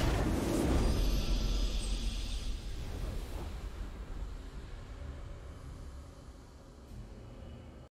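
A triumphant musical fanfare plays.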